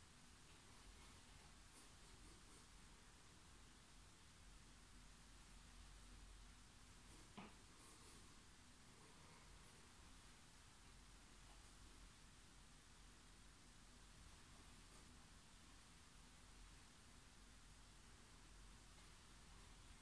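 Exercise equipment clicks and creaks faintly.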